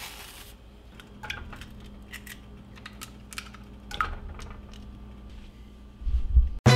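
Eggs sizzle and pop in a hot frying pan.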